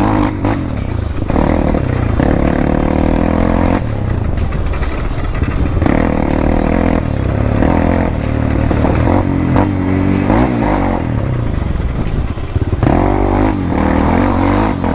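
A dirt bike engine revs and putters up close, rising and falling in pitch.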